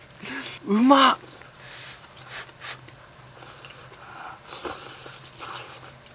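A young woman slurps noodles.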